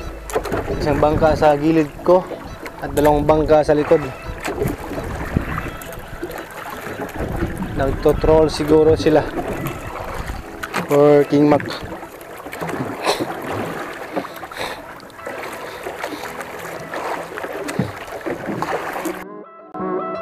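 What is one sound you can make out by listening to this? Wind blows hard across open water.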